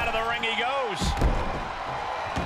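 A heavy body slams onto a mat with a thud.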